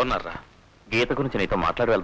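A second man answers in a calm voice.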